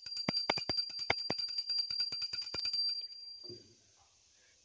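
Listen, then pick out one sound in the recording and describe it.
A small hand bell rings rapidly and clearly.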